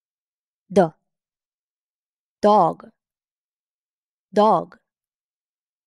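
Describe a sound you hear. A woman says short words clearly into a microphone, pausing between them.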